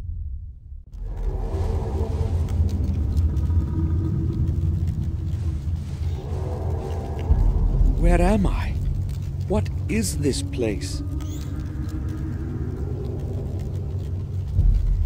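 Torch fires roar and crackle steadily.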